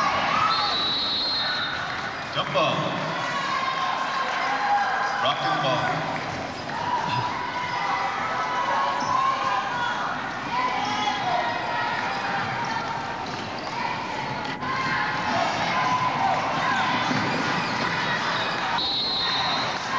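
A crowd murmurs and chatters throughout a large echoing gym.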